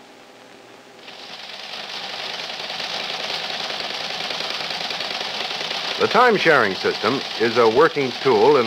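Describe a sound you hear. A teleprinter clatters steadily.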